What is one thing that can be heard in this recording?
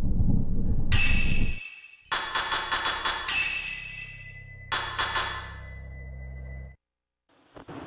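Menu chimes and clicks sound in quick bursts.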